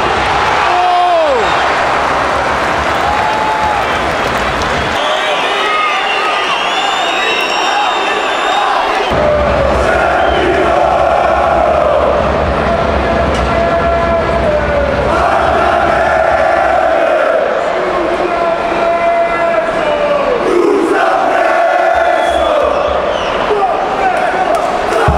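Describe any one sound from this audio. A large crowd chants and sings loudly in a big open stadium.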